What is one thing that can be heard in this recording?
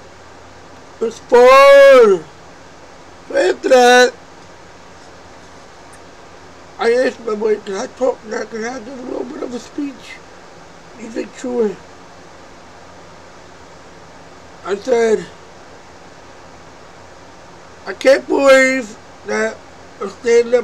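A man speaks close to a microphone in short bursts, with animated, drawn-out exclamations.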